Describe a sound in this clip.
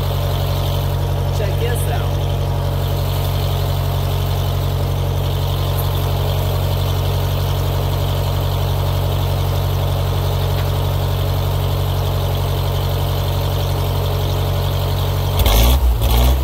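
An engine idles steadily nearby.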